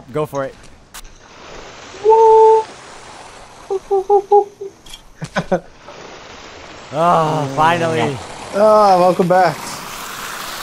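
A pulley hisses along a rope line as someone slides down it.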